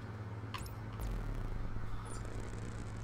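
A low electronic failure buzz sounds.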